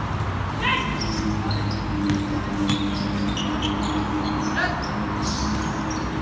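A basketball bounces repeatedly on a hard court.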